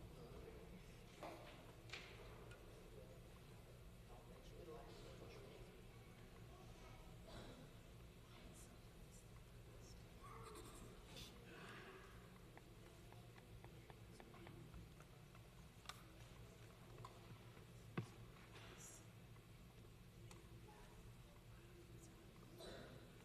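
A congregation murmurs and shifts quietly in a large echoing hall.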